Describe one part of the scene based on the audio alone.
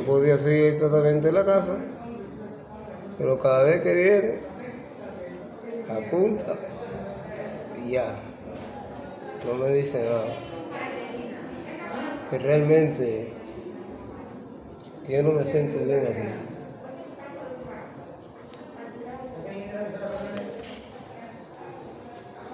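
A man speaks weakly and slowly, close by, in short phrases with pauses.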